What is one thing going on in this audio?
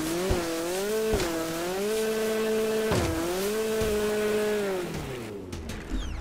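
Water splashes and sprays under a jet ski.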